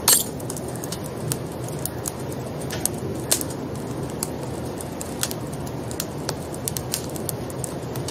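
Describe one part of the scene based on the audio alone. Keys click on a computer keyboard.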